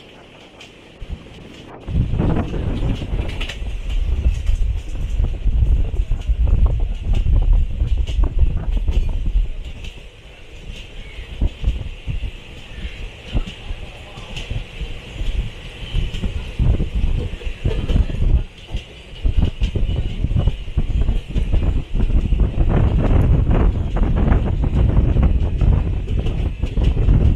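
A train rumbles and clatters along the tracks, heard from inside a carriage.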